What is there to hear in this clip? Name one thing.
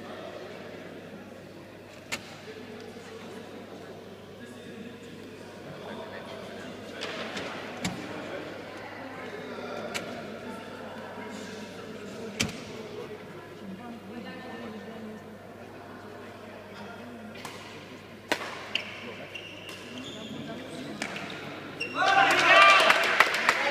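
People chatter in the background in a large echoing hall.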